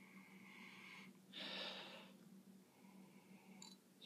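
A teenage boy gulps a drink.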